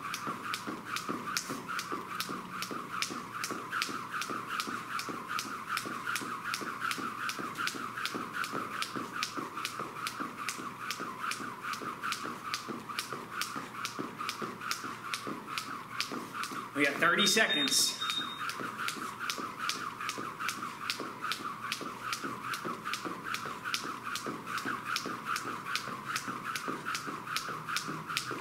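A jump rope slaps the floor in a quick, steady rhythm.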